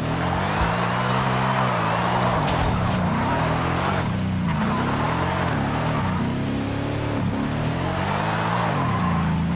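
Tyres screech and squeal as a car drifts on the road.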